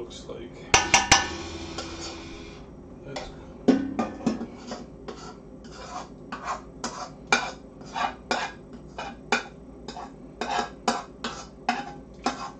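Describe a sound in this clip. Food sizzles gently in a hot pan.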